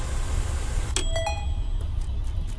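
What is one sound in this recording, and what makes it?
A bright chime rings out.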